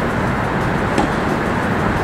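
A tennis racket strikes a ball with a sharp pop in a large echoing hall.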